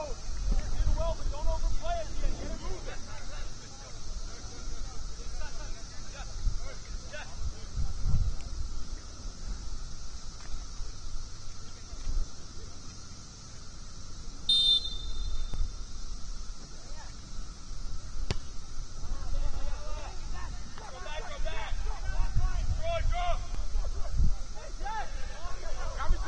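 Young men shout and call out to each other across an open field in the distance.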